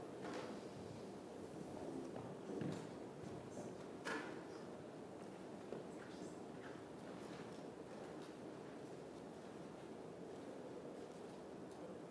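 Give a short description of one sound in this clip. A man speaks calmly through a microphone, heard in a large room.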